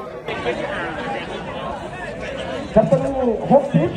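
Men and women in an outdoor crowd talk and exclaim excitedly nearby.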